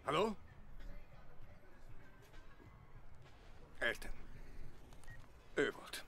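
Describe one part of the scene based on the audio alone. A man speaks into a phone.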